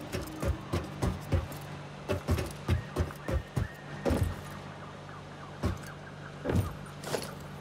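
Footsteps thud on a hollow metal floor.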